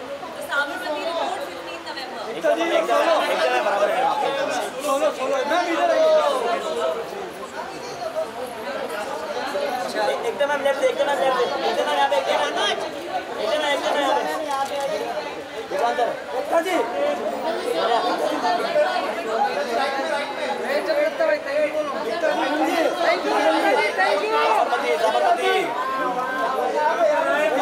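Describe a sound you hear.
A crowd of men shout and call out loudly nearby.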